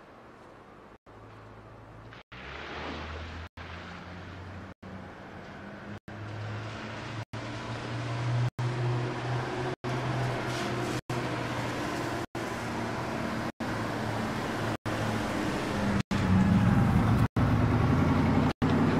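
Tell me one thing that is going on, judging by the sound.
A car engine rumbles as a car approaches and grows louder.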